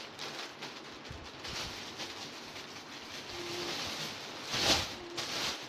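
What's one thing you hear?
Plastic wrapping rustles and crinkles close by.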